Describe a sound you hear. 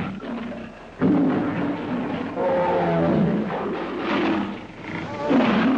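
A lion roars loudly.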